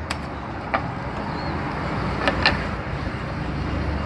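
A plastic pipe knocks against a wooden table.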